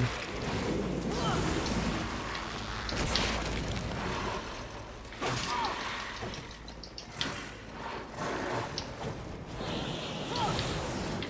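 Game flames whoosh and roar in bursts.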